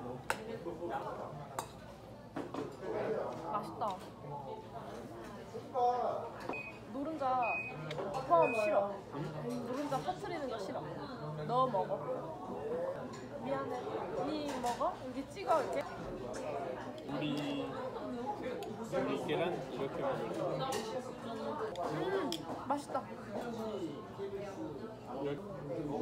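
Chopsticks and spoons clink against dishes.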